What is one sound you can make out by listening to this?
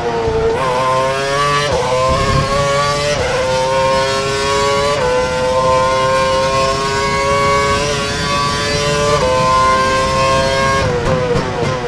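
A racing car engine screams at high revs, climbing in pitch with quick gear changes.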